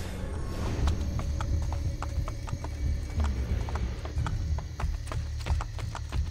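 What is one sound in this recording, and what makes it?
Footsteps walk steadily over cobblestones.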